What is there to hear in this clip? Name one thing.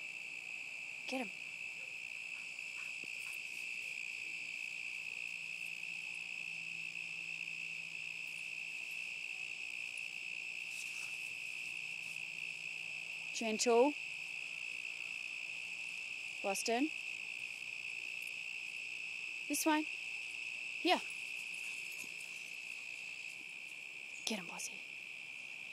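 A dog whines in short high yelps now and then.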